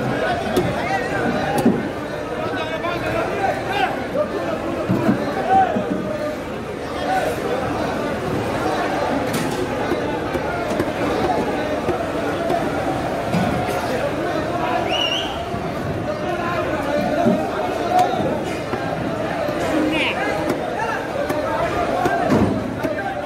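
A knife chops through fish on a wooden block with dull thuds.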